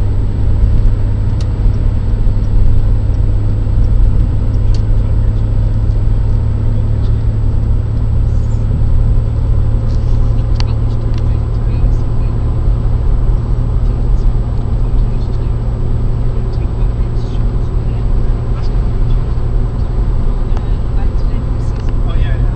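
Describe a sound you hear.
A car engine hums steadily from inside a moving car.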